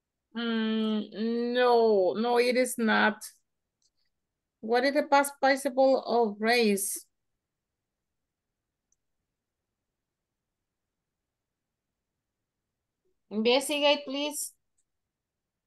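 A woman speaks calmly over an online call, in short phrases with pauses.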